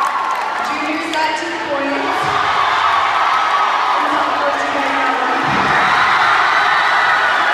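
A large crowd cheers and chatters loudly in an echoing hall.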